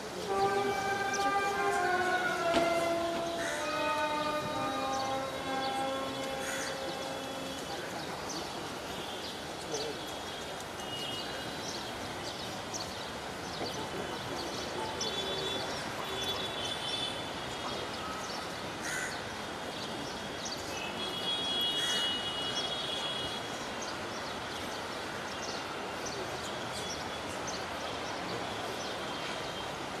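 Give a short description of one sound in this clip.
A crowd of mourners murmurs quietly outdoors.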